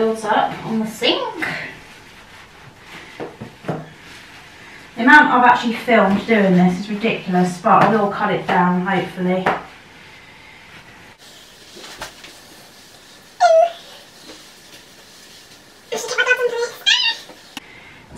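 A sponge scrubs a sink.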